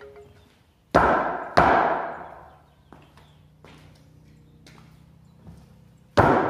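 Feet thump on a wooden beam.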